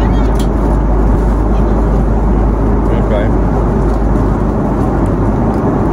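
A plastic fork clicks against a food tray.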